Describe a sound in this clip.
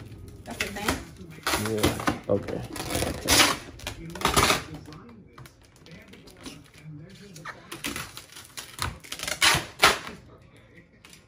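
Plastic film crinkles and rustles as hands stretch it.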